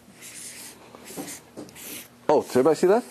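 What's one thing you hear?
A marker squeaks across paper.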